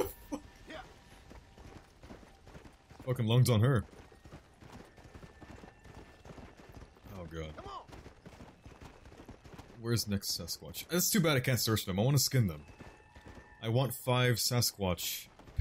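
A horse gallops with hooves thudding on snow.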